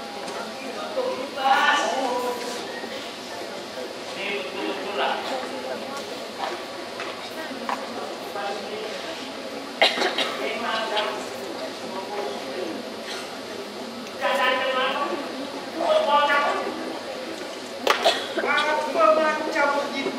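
An elderly man speaks loudly and expressively through a microphone.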